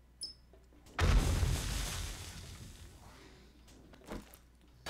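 A loud explosive burst with crackling sparks erupts and slowly fades.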